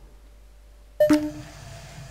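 A metal lantern clinks as it is picked up.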